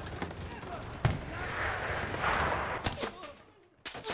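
Rifle shots ring out close by.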